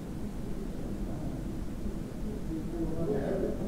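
A group of men murmur in the background.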